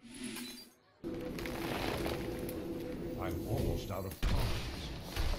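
A game's spell effect whooshes and chimes loudly.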